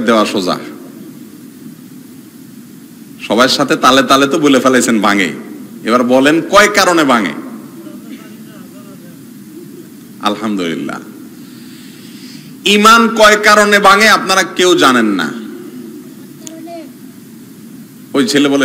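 A man preaches with animation through a microphone and loudspeakers, pausing between phrases.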